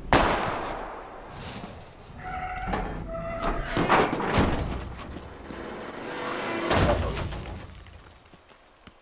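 A car crashes down with a loud metal crash and crunch.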